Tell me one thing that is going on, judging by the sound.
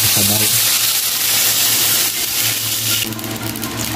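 Water pours into a hot pan with a hiss.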